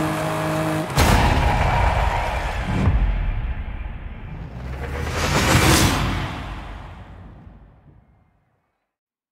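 A car engine revs and rushes past, then fades away.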